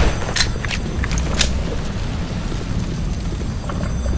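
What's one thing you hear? A pistol is reloaded with a metallic click.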